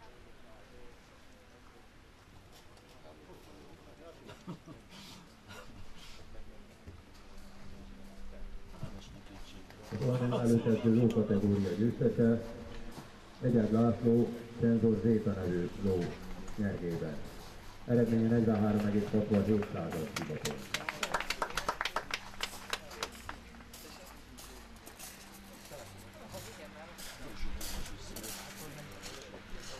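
Horses' hooves thud softly as the horses walk on sand.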